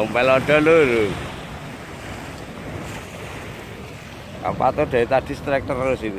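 Waves splash against a concrete pier.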